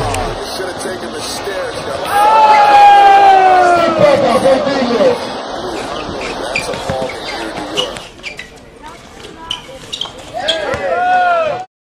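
A basketball thuds as it bounces on the court.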